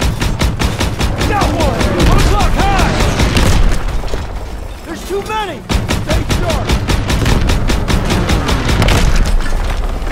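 A heavy anti-aircraft cannon fires in rapid bursts of booming shots.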